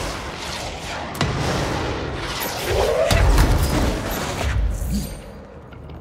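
Gunfire rattles and debris clatters.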